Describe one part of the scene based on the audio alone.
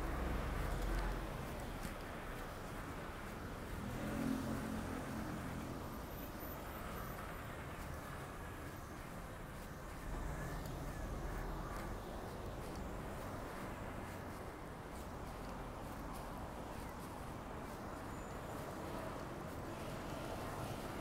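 Steady city traffic hums and rumbles outdoors.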